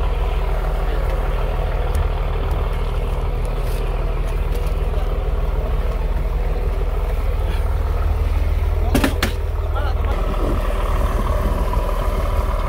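An outboard motor drones steadily, then slows as the boat comes alongside.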